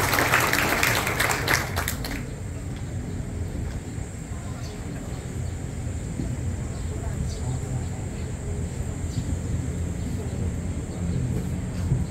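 Wind blows across the microphone outdoors with a low rumble.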